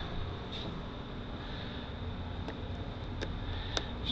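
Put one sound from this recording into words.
A screwdriver clicks and scrapes against metal parts.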